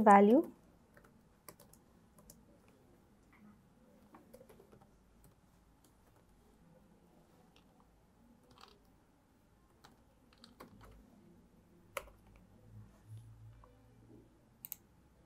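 Keys click softly on a laptop keyboard.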